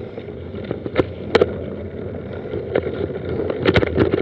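A mountain bike rattles and clunks over bumps.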